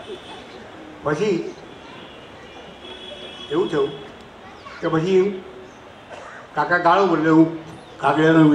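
An elderly man speaks slowly and calmly through a microphone, with long pauses.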